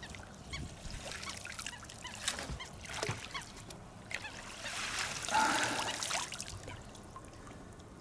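A fish thrashes and splashes in the water close by.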